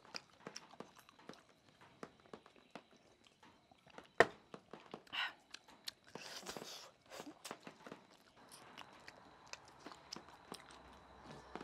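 A woman gulps a drink.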